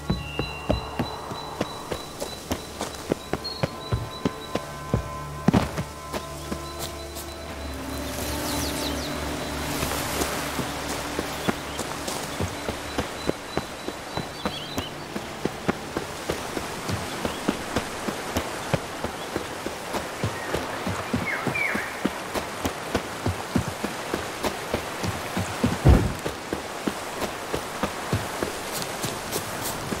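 Footsteps run quickly and steadily along a dirt path.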